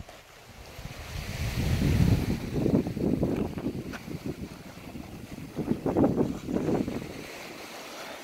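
Small waves lap gently against a rocky shore.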